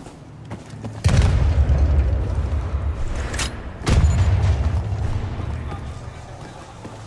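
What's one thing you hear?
Loud explosions boom and rumble nearby.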